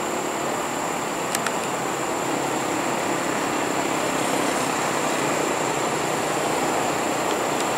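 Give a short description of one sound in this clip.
An electric train rumbles slowly along the tracks, growing louder as it approaches.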